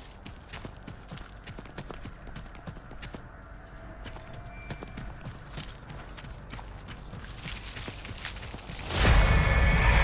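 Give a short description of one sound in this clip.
Footsteps tread at a quick pace.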